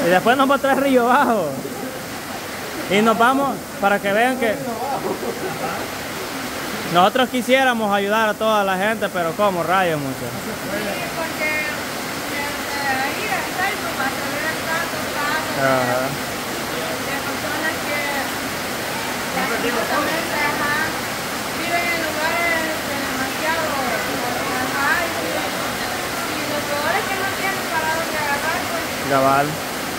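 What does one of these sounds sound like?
Rain falls steadily on a roof outdoors.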